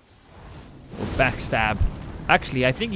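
A fiery blast bursts with a loud roar.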